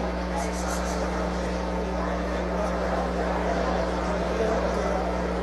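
Many men and women chatter at once in a large echoing hall.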